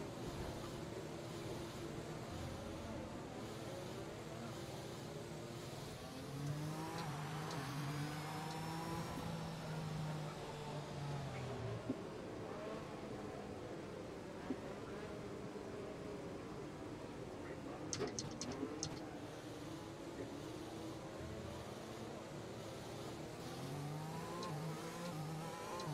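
A racing car engine drones steadily, its pitch rising and falling as the car speeds up and slows down.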